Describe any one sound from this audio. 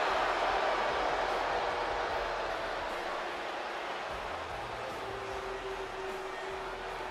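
A large crowd cheers and roars in a big echoing arena, slowly easing off.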